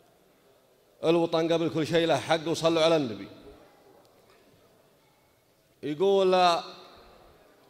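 A young man chants a poem loudly through a microphone, echoing in a large hall.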